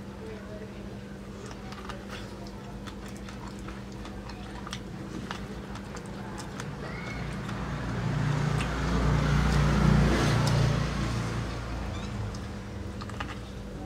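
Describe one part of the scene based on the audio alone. A man bites and chews corn on the cob close by.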